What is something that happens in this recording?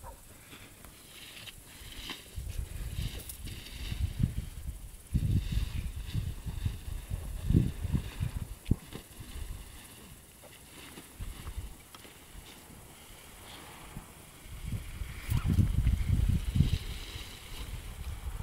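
A paraglider canopy rustles as it is pulled across the grass.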